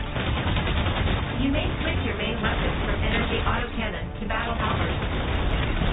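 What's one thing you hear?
Energy weapons fire with sharp bursts.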